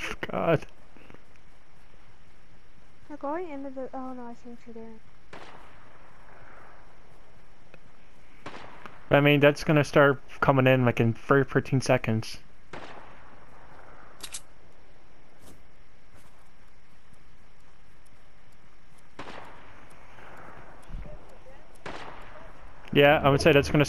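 Footsteps crunch on snow.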